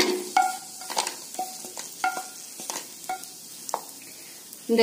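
Small fried nuts clatter onto a ceramic plate, which rings briefly with each drop.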